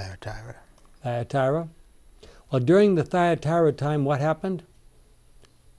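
An elderly man speaks calmly and clearly into a microphone.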